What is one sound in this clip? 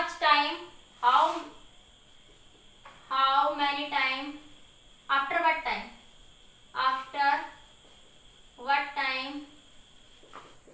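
A woman speaks calmly nearby, in short phrases with pauses.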